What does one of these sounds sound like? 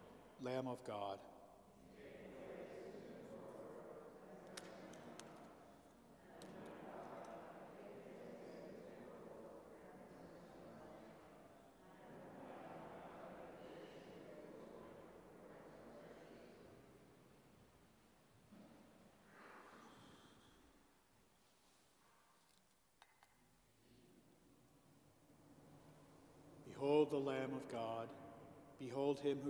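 A man speaks slowly and solemnly into a microphone in a large echoing hall.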